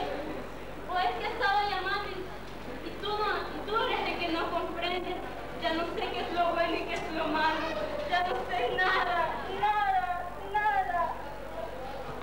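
A young woman speaks with emotion, close by.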